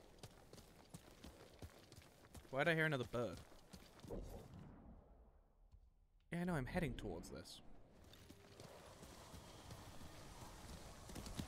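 A horse gallops, its hooves thudding on soft ground.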